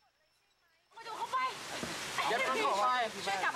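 Several young people chat together outdoors.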